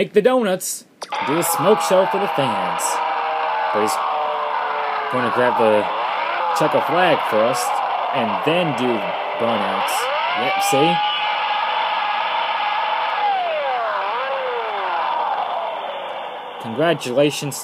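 Music plays through a small phone speaker.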